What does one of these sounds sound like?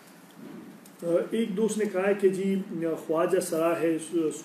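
A middle-aged man speaks calmly and clearly into a nearby microphone.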